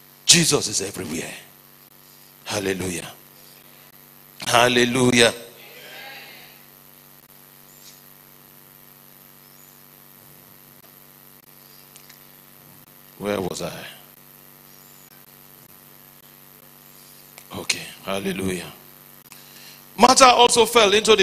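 A man preaches forcefully into a microphone in short bursts, with long pauses.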